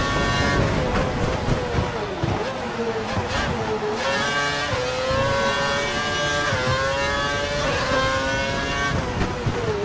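A racing car engine screams at high revs, dropping in pitch with each gear change and braking, then climbing again.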